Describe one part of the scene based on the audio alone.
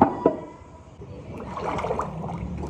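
Thick liquid clay pours and splashes into a mould.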